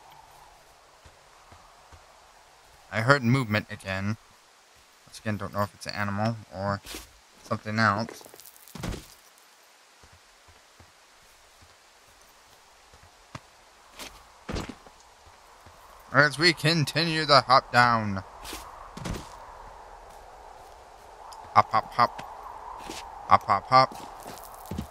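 Footsteps crunch slowly over dry dirt and rocks.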